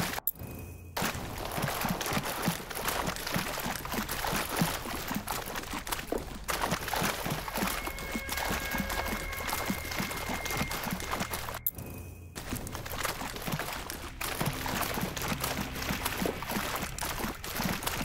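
Water splashes steadily as someone wades.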